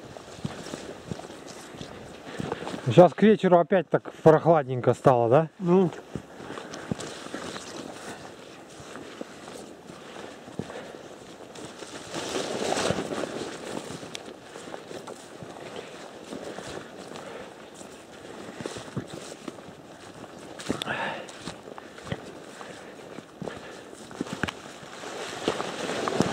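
Footsteps rustle and swish through dense undergrowth.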